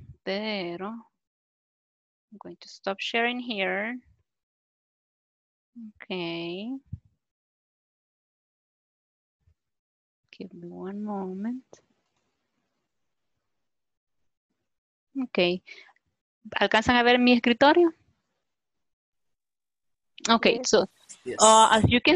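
A woman speaks in short, lively phrases over an online call, with pauses between them.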